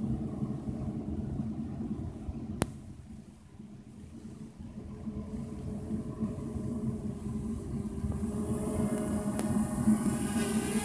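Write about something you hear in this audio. A small drone's propellers whine and buzz, growing louder as the drone comes close.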